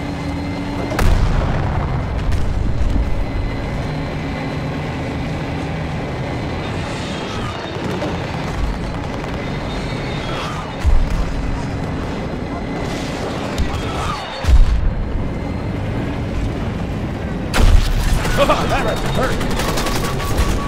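Heavy explosions boom close by.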